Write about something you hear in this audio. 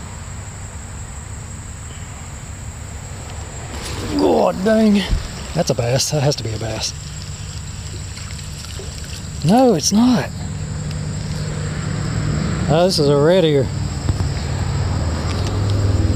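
Shallow water flows and ripples steadily outdoors.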